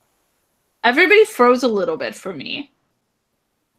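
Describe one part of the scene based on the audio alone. A woman talks through an online call.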